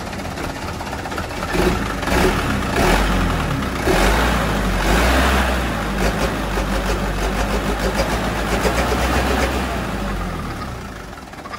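A truck engine idles loudly with a deep rumble.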